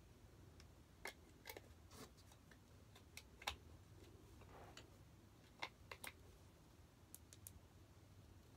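Small plastic parts click and clatter close by.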